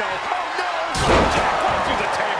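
A table crashes and breaks with a loud wooden smash.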